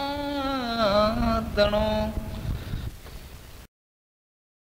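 A man sings a sustained, wavering melody that ends abruptly.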